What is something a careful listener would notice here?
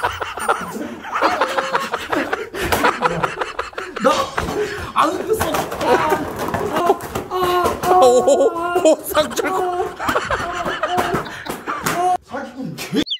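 A young man laughs hard and shrieks.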